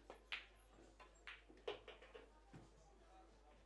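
Pool balls clack together and knock into a pocket.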